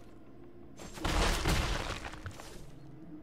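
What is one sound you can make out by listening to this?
A magical whoosh sounds.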